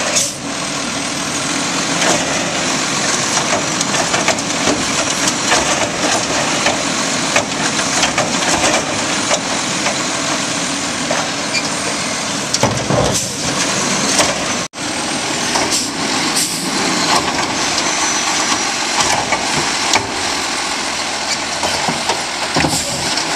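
A garbage truck engine rumbles steadily nearby.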